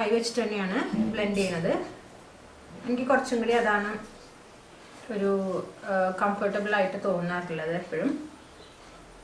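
A young woman talks calmly and clearly, close to a microphone.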